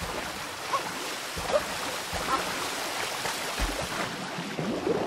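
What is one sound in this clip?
A waterfall rushes down steadily.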